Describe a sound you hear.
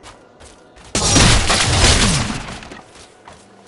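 A magic blast whooshes and crackles loudly.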